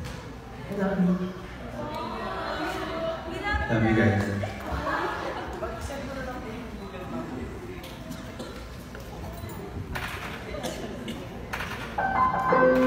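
A young woman sings through a microphone and loudspeakers.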